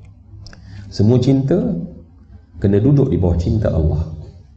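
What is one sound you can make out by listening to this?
A middle-aged man speaks calmly into a microphone, close and amplified.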